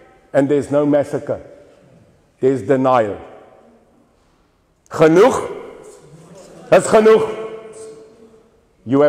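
A middle-aged man speaks with animation in bursts, in a room with a slight echo.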